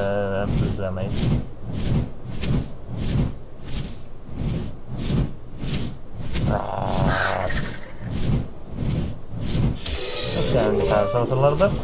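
Large wings flap heavily in a steady rhythm.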